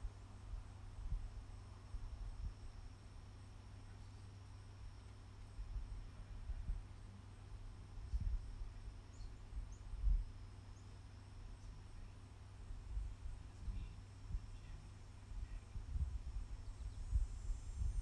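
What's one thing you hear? Wind blows outdoors in soft gusts, rumbling against the microphone.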